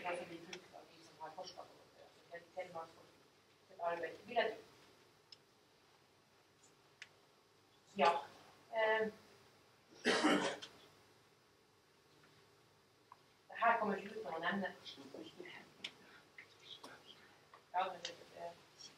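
A woman speaks calmly, pausing between phrases.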